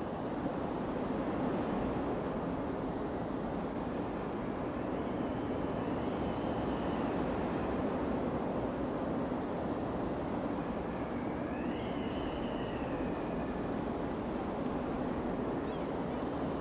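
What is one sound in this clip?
A deep, steady roar of burning fire rumbles throughout.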